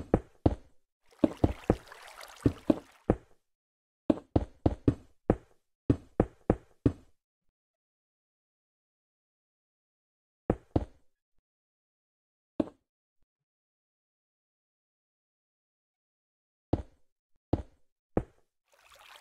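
Stone blocks are placed with short, sharp knocks.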